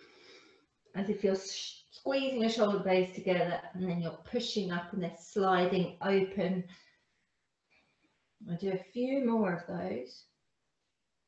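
A woman speaks calmly, giving instructions close to a microphone.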